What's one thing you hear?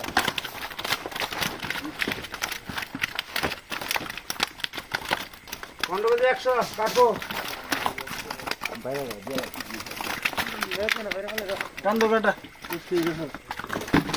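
Fish flap and slap against plastic and paper.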